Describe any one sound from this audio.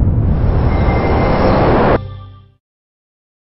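A loud energy blast roars and cuts off abruptly.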